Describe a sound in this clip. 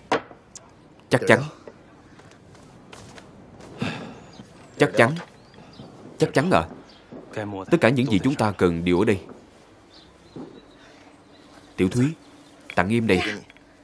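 A young man talks with animation.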